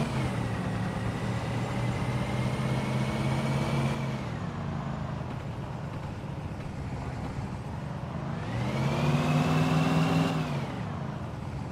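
A truck engine revs loudly, rising and falling in pitch.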